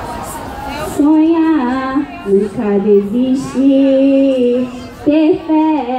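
A young woman sings loudly through a microphone and loudspeakers.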